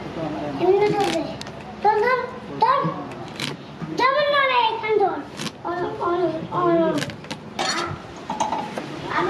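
A knife chops through vegetables with sharp clicks.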